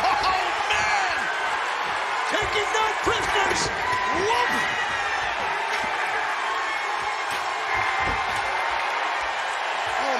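Heavy thuds ring out as wrestlers slam onto a ring canvas.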